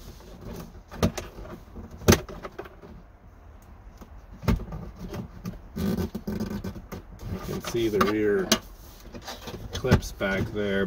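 Plastic trim clicks and snaps as it is pressed into place.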